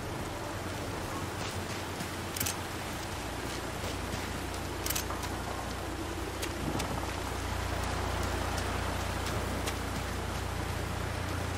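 Footsteps crunch on wet ground.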